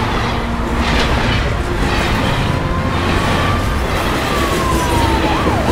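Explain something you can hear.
A steam engine chuffs as it approaches.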